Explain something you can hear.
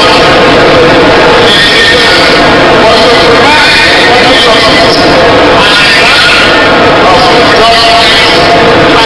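An elderly man reads out a speech into a microphone, heard through loudspeakers in a large echoing space.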